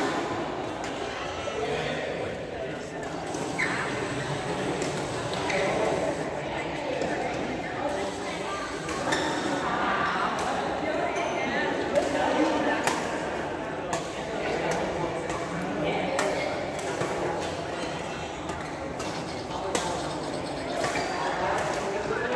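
Badminton rackets hit shuttlecocks with sharp pops.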